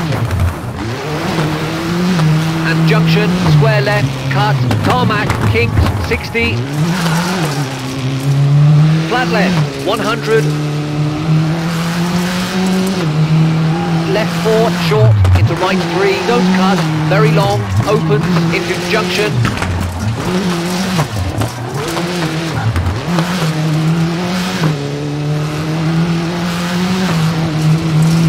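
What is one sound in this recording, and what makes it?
Tyres crunch and spray over a wet gravel road.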